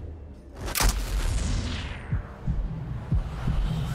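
A bullet whooshes through the air.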